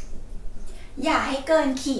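A young woman speaks briefly, close by.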